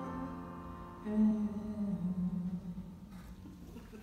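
A young woman sings into a microphone over a loudspeaker.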